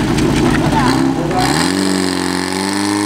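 A pump engine revs up, its pitch rising.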